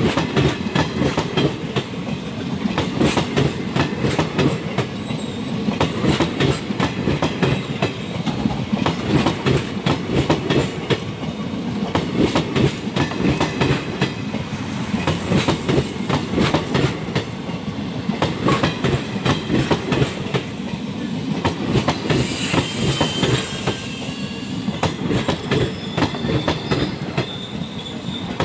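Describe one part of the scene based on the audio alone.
A train rumbles past close by at speed.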